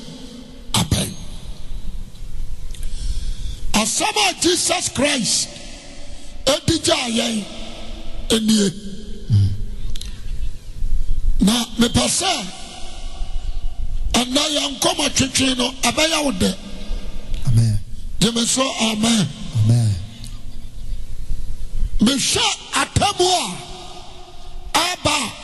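A young man preaches with passion through a microphone, his voice booming over loudspeakers.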